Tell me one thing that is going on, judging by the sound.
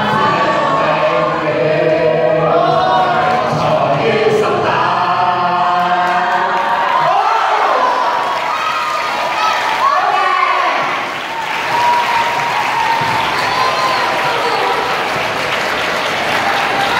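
A group of young people sings together in a large, echoing hall.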